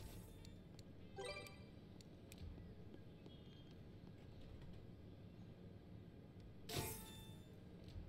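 Menu buttons click softly several times.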